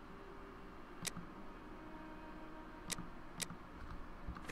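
Soft clicks sound a few times.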